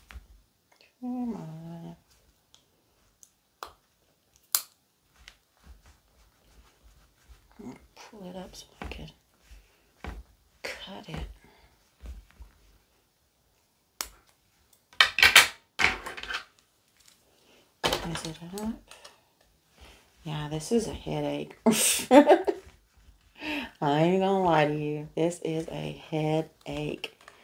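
A middle-aged woman talks calmly nearby.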